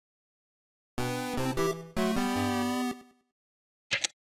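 A short video game victory jingle plays.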